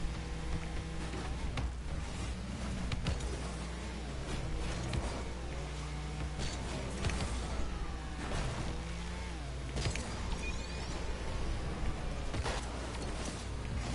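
A racing car engine hums and roars steadily.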